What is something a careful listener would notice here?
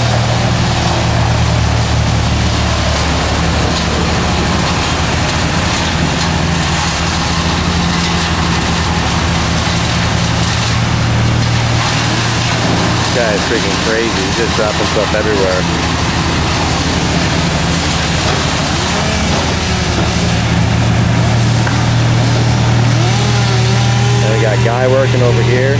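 A diesel engine rumbles steadily nearby.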